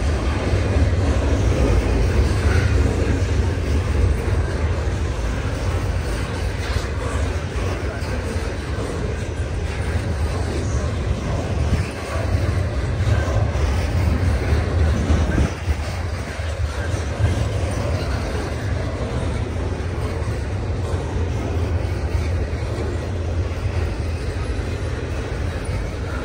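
A long freight train rumbles steadily past, its wheels clattering on the rails.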